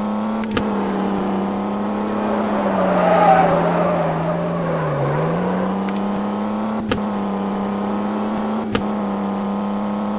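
A car engine hums steadily, dropping in pitch briefly and then rising again.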